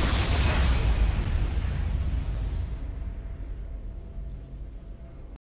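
A heavy explosion booms and rumbles, then slowly fades away.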